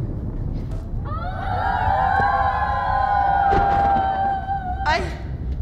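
A group of children sings together in a large hall.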